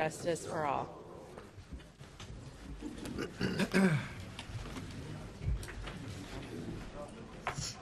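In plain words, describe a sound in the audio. Chairs creak and knock as a group of people sit down in a large room.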